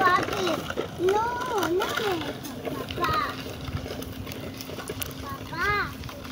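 A young child chatters and sings out in a high voice nearby.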